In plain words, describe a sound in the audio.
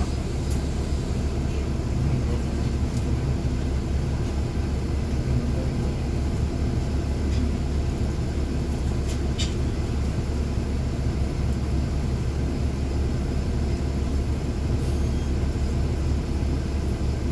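Traffic passes by on the street outside.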